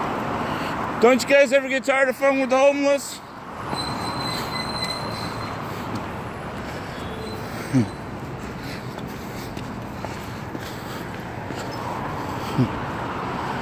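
Cars hiss past on a wet road nearby.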